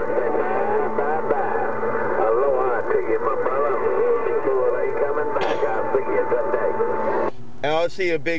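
A radio receiver hisses and warbles with garbled, distorted transmissions.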